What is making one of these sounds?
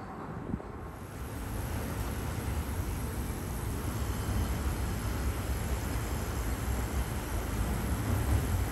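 A train rumbles as it pulls into the station.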